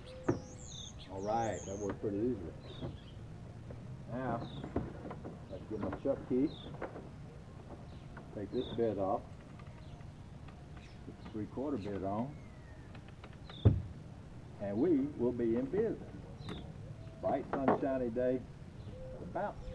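An older man talks calmly, close by.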